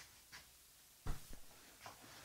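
A mug is set down on a table with a knock.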